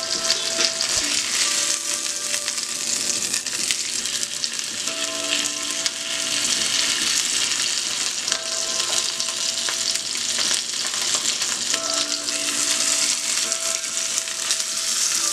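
Metal tongs click and scrape against a pan.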